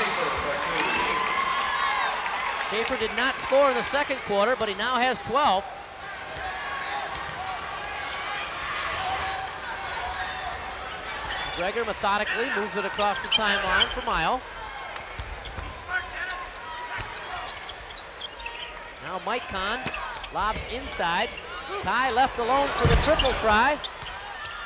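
A crowd in a large echoing gym murmurs and cheers.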